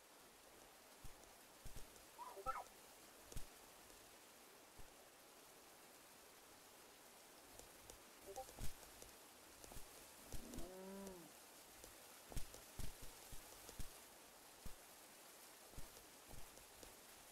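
Paws thud softly on the ground in quick bursts.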